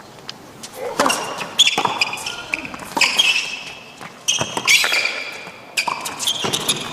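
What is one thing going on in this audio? Tennis rackets strike a ball back and forth in a sharp, regular rhythm.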